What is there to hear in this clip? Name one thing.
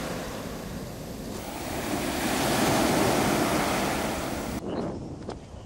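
Waves wash onto a pebbly shore.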